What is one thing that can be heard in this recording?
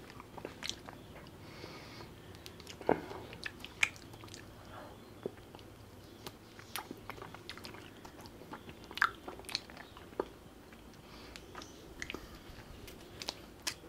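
A man bites and crunches on a small wooden stick.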